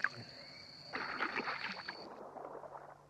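A fish leaps from the water with a splash.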